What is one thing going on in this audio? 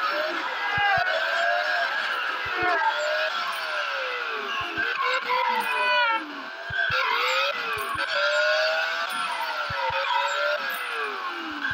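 Racing car engines roar and whoosh past, rising and falling in pitch.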